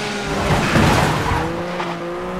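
Metal scrapes and crashes against a wall.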